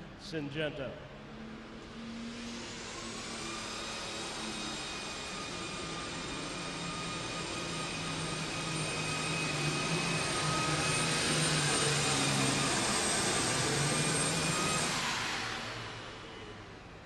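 A tractor engine roars loudly with a high whine, building up and then cutting off.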